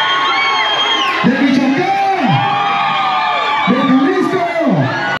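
A live band plays loudly through loudspeakers.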